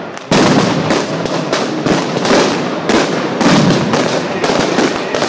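An elderly man chants loudly through a microphone over loudspeakers.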